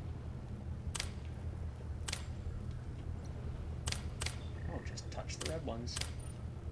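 Buttons click sharply several times.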